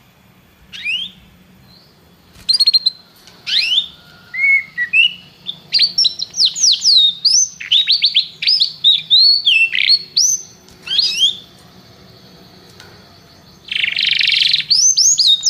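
A canary sings close by in loud, rapid trills and whistles.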